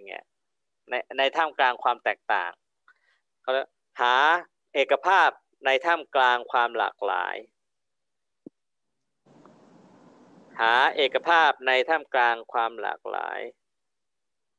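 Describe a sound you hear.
A man speaks calmly through an online call, in bursts with pauses.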